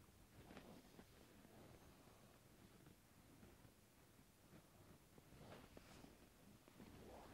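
Clothing rustles softly as hands press on a back.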